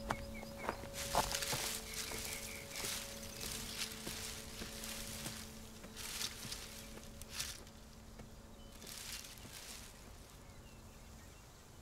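Tall cornstalks rustle as a child pushes through them.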